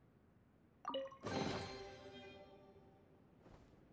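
A bright chime rings as a treasure chest opens.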